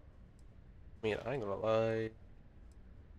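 A woman speaks a few calm words close by.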